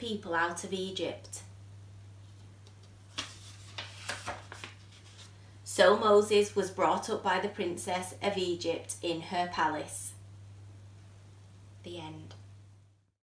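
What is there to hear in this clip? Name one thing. A woman reads aloud close by, in a calm, expressive voice.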